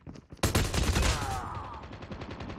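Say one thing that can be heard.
A gun fires a rapid burst up close.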